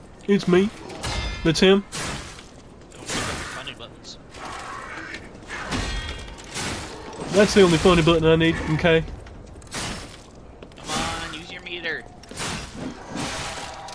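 Swords slash and clash in quick, sharp bursts.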